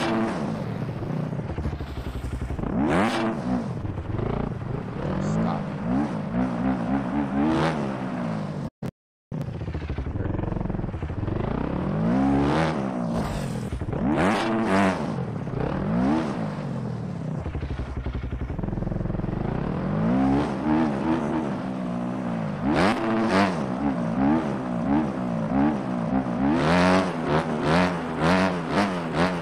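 A dirt bike engine revs up and down repeatedly.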